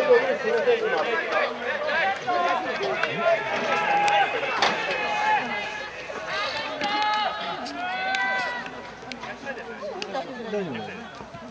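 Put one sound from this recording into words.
A crowd of young men shout and cheer loudly nearby, outdoors.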